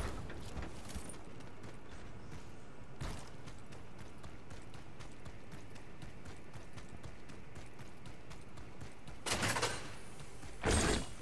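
Quick footsteps run steadily on hard ground.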